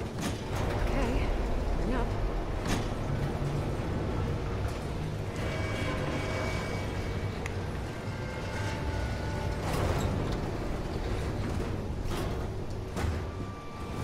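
An elevator rumbles and creaks as it rises.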